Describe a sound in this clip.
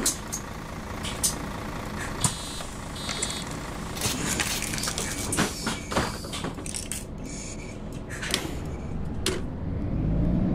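Bus doors hiss and thump shut.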